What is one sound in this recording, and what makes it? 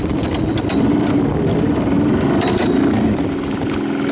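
Water laps gently against the side of a boat.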